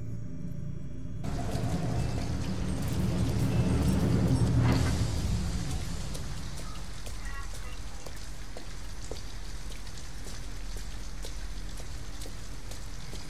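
Rain patters steadily on the street.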